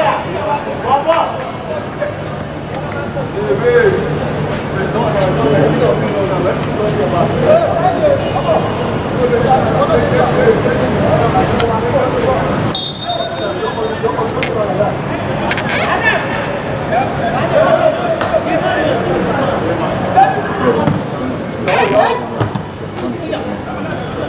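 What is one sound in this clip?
Young men shout to each other in the distance, outdoors.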